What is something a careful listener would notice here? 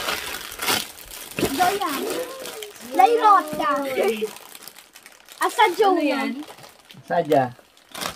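Foil crinkles as a chocolate egg is unwrapped.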